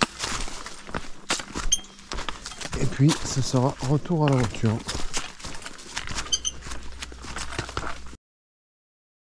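Footsteps crunch through dry leaves on a path.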